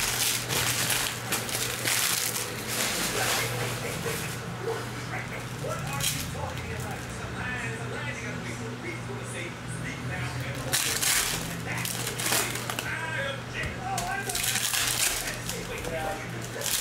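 Foil card wrappers crinkle and tear as hands open them.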